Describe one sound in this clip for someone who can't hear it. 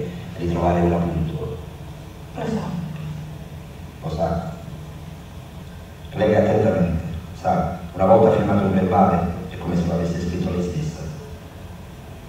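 A woman speaks quietly and tensely, heard through a television speaker.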